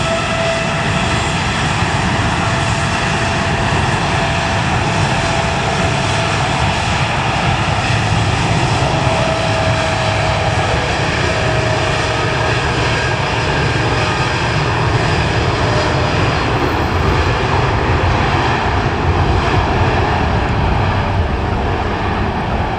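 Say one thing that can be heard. Jet engines roar steadily as a large airliner taxis and rolls down a runway.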